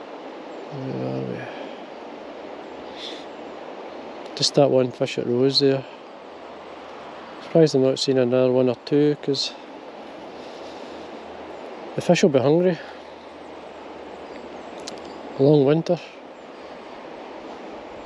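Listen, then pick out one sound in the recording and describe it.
A shallow river ripples and babbles steadily over stones.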